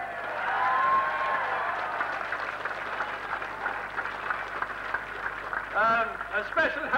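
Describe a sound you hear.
A crowd of men cheers and chatters noisily.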